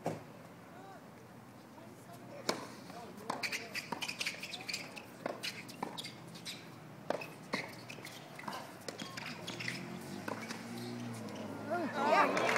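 Tennis balls are struck hard with rackets in a fast rally.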